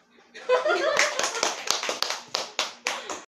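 Hands clap quickly several times.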